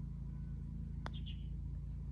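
A golf putter taps a ball.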